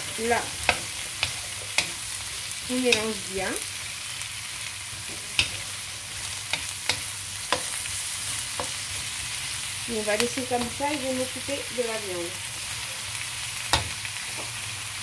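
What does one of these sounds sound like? A spatula scrapes and clacks against a metal pan.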